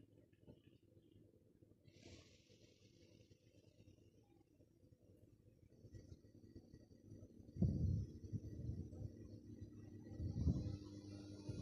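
A passenger train rumbles along the track.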